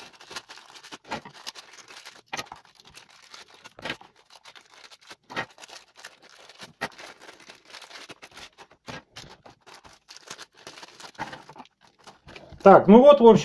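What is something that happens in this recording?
Plastic bags crinkle and rustle as hands handle them.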